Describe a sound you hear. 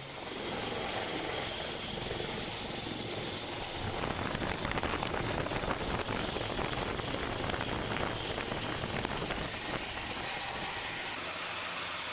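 A helicopter roars loudly overhead as it comes in to land.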